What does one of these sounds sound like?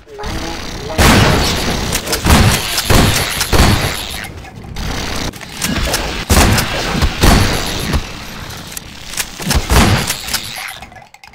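A pump-action shotgun fires again and again.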